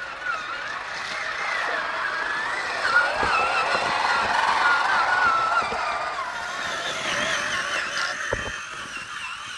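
A small electric motor whines, rising and falling in pitch.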